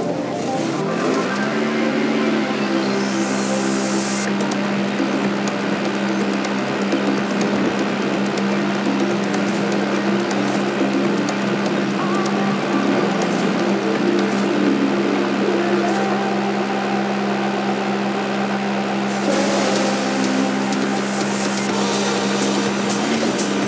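Tyres crunch and rattle over a dirt track.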